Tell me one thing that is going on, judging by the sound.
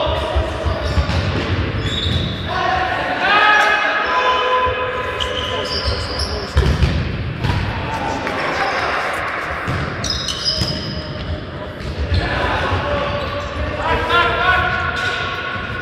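Young men shout to each other in an echoing sports hall.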